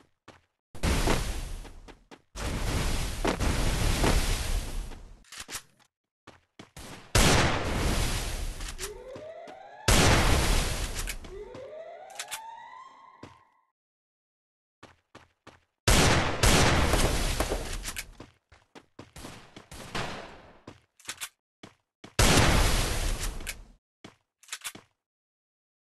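Loud whooshing bursts sound again and again as walls pop up in a video game.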